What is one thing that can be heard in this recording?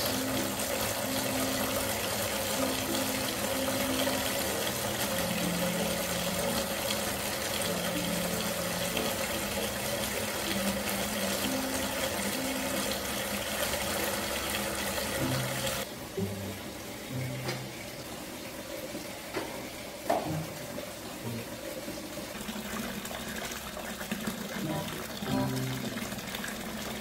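Water pours from a tap and splashes into a tub.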